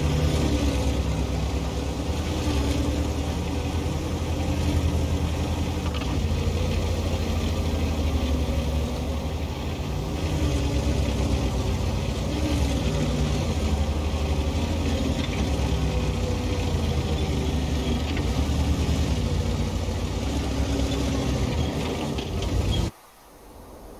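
Tank tracks clatter and squeak.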